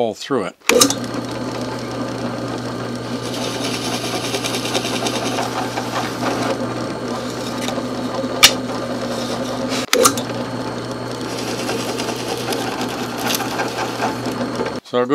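A drill press motor hums steadily.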